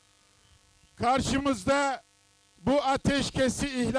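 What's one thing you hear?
An elderly man speaks forcefully into a microphone.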